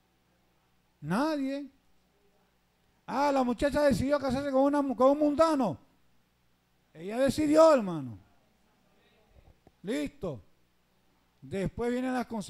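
A man preaches with animation through a microphone and loudspeakers, in short bursts with pauses.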